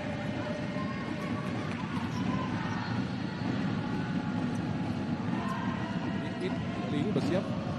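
A crowd murmurs and cheers steadily in a large echoing hall.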